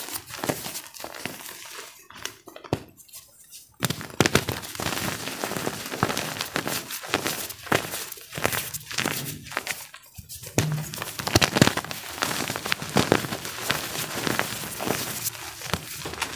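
Hands squeeze and crumble soft powder, with close crunching and crackling.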